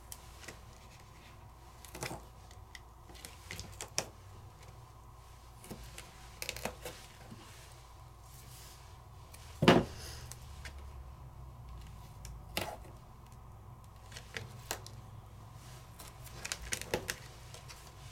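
Tape crinkles and rustles as fingers press it down.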